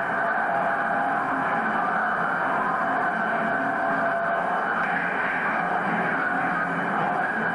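A television plays sound from a small loudspeaker nearby.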